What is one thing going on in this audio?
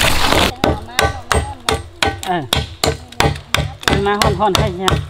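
A machete chops into bamboo with quick, sharp, hollow knocks.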